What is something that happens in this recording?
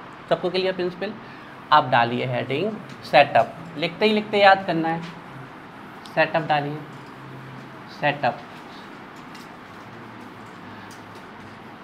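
A duster rubs across a chalkboard.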